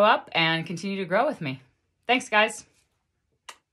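A woman speaks warmly and calmly, close to a microphone.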